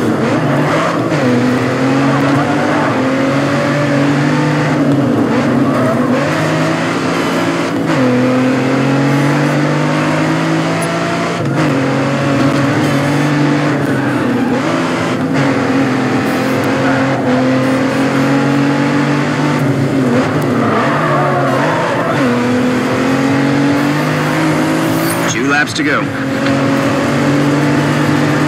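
A car engine roars at high revs, rising in pitch and dropping with each gear change.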